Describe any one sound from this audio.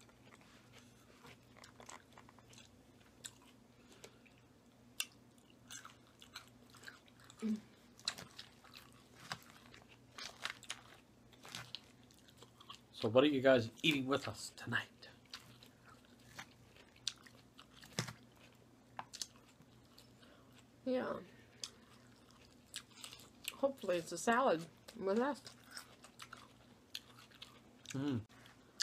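A woman chews and crunches salad close to a microphone.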